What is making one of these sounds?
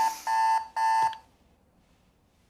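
A hand slaps down on an alarm clock.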